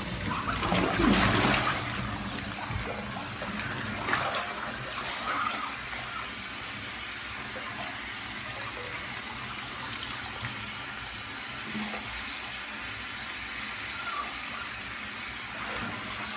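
Water gushes from a hose into a filling tub.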